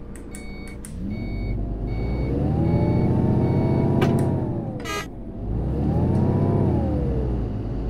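A bus engine revs up, drops away and revs up again.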